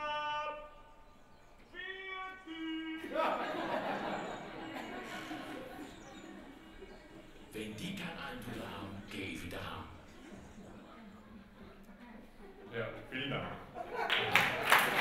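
A man speaks calmly to an audience in an echoing hall.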